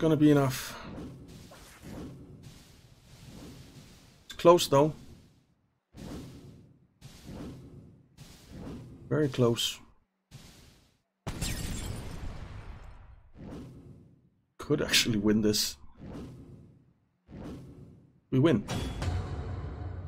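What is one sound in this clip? Sharp game effects burst and whoosh in short bursts.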